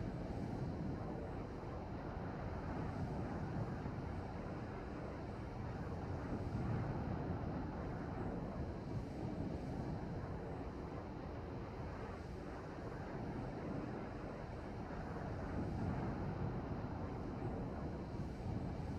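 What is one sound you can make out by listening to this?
A plane's engines drone steadily and low.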